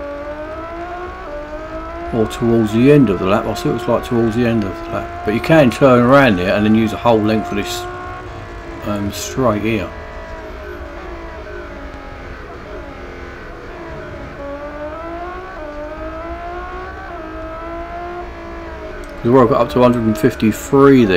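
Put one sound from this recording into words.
A racing car engine roars and changes pitch as the car speeds up and slows down.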